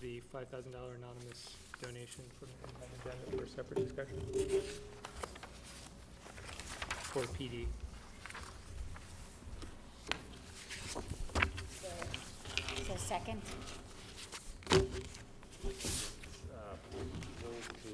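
An adult speaks calmly through a microphone in a large room.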